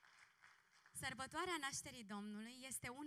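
A woman speaks with animation into a microphone, heard through loudspeakers.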